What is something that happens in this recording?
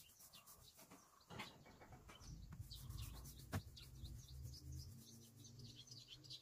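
A brush scrapes against metal wall siding.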